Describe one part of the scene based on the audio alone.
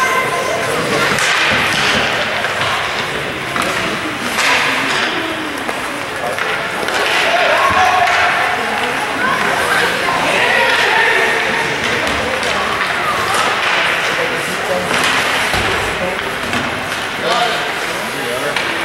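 Skates scrape and glide across ice in a large echoing rink.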